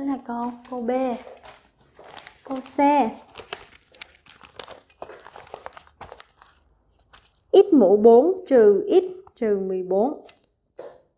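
A young woman speaks calmly and clearly close by.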